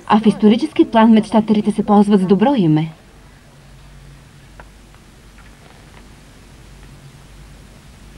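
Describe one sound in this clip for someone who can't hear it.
Magazine pages rustle softly as they are turned.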